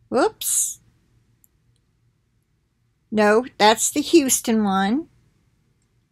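An elderly woman speaks calmly, close to the microphone.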